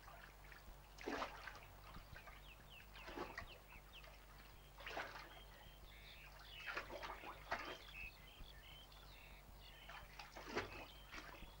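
Water splashes as a person wades slowly through a shallow stream.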